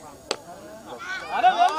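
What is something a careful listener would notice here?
Several men shout and cheer excitedly outdoors.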